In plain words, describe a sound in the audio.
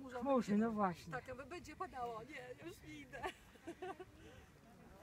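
Several men and women chatter nearby outdoors.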